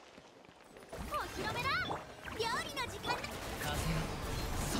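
Game combat effects whoosh and chime.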